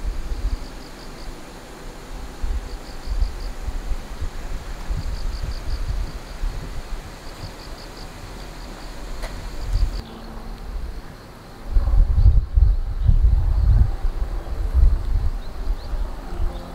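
Wind gusts outdoors, rumbling and buffeting in bursts.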